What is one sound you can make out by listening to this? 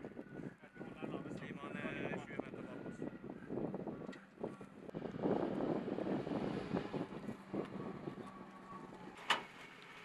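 An armoured vehicle's engine rumbles as it drives over gravel.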